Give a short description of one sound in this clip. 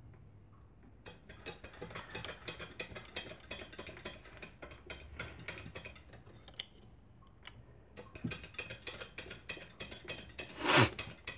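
A hand scrapes and files at a small piece of metal with quick, rough strokes.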